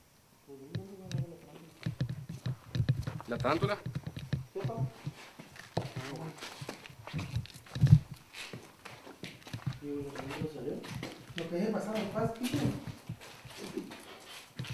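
Footsteps shuffle and knock on a hard floor.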